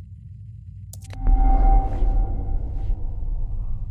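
A device switches off with a sharp click and a short humming tone.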